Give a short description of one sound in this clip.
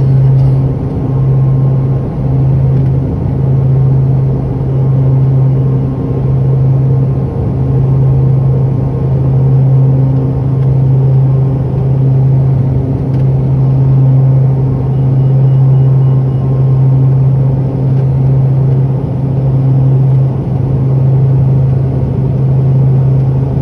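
The twin turboprop engines of a small airliner drone and whine at full power, heard from inside the cabin as it takes off and climbs.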